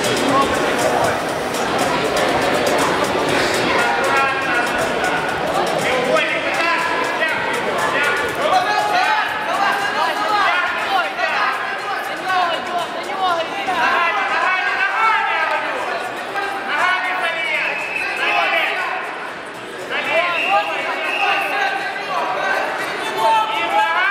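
Men in a crowd shout loudly and keep calling out in a large echoing hall.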